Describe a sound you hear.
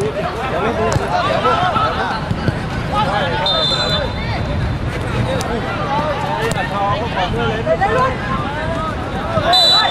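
A crowd of young men shouts and cheers nearby, outdoors.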